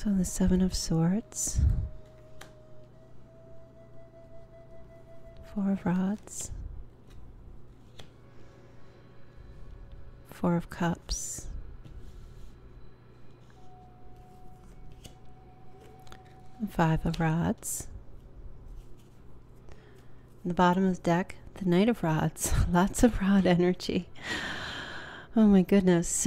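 Playing cards shuffle and riffle softly.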